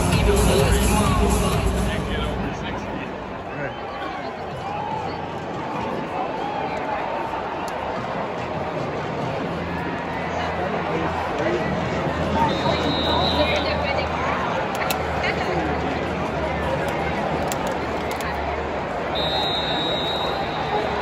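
A sparse crowd murmurs and cheers in a large echoing stadium.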